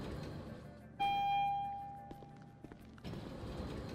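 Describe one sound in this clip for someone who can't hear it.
An elevator chime dings once and rings out.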